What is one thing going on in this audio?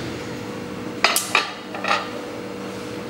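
A cup clinks as it is set down on a saucer.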